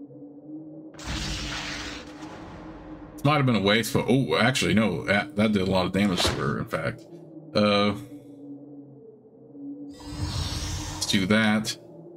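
A magical spell shimmers with a rushing whoosh.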